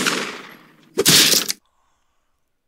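A bomb explodes with a loud blast.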